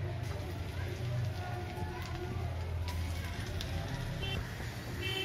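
Batter drops plop into hot oil.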